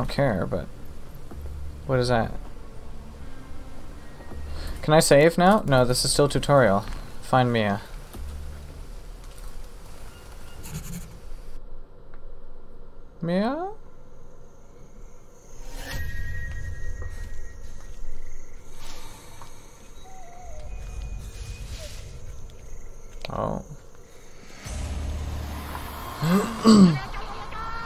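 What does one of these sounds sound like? A young man talks with animation into a close headset microphone.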